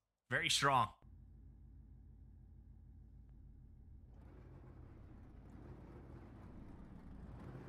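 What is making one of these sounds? A pickup truck engine idles with a low rumble.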